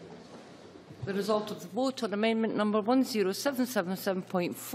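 An older woman speaks clearly and formally into a microphone.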